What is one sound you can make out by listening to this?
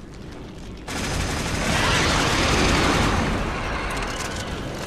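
A fiery explosion bursts and roars.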